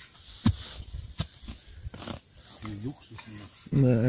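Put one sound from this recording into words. A shovel cuts into grassy soil with thuds and scrapes.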